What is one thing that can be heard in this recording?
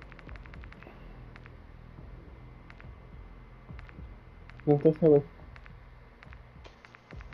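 Soft interface clicks tick repeatedly as menu items change.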